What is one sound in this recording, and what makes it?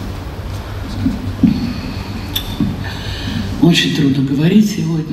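A woman speaks into a microphone, heard through loudspeakers in a large echoing hall.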